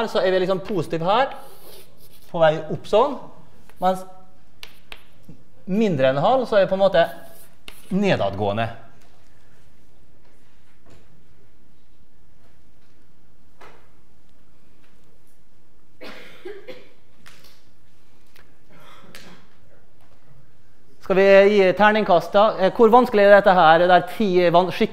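An elderly man lectures through a microphone, pausing often.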